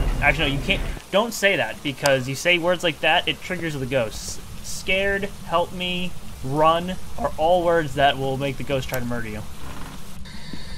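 A young man talks with animation into a headset microphone, heard close up.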